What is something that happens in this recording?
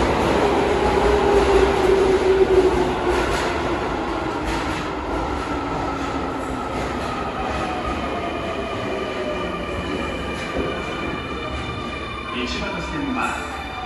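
An electric subway train's motors whine and fall in pitch as the train brakes to a stop.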